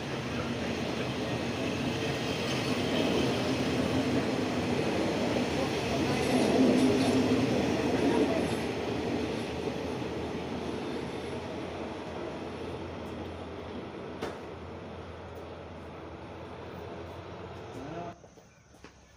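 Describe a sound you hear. Passenger train carriages rumble past on the rails, then fade into the distance.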